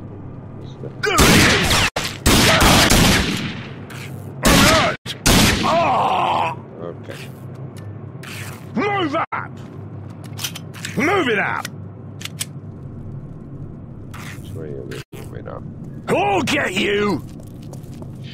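A young man talks with animation into a nearby microphone, in short bursts.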